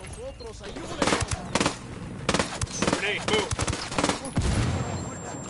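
Gunshots fire in quick, sharp bursts.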